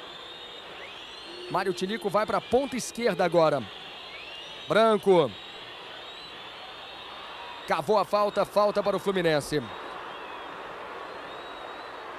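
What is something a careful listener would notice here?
A large crowd murmurs in a stadium.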